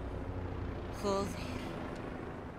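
A woman speaks briefly.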